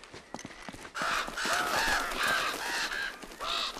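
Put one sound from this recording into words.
A bird chirps repeatedly.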